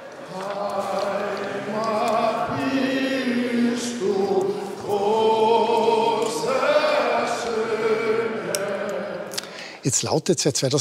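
A large crowd sings together in a big echoing hall.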